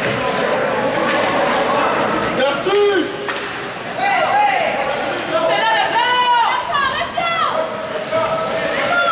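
Ice skates scrape and swish across an ice rink.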